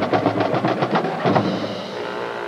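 Drums beat rapidly.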